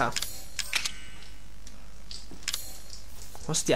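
Short menu clicks and chimes sound.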